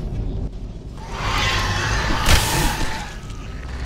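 A sword swishes through the air and strikes.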